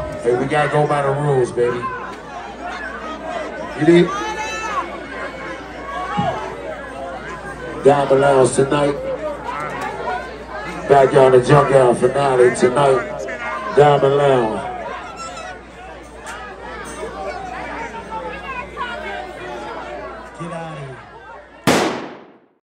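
A crowd outdoors cheers and chatters.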